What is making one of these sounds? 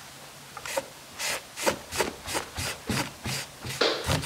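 A cloth wipes briskly back and forth over a hard surface.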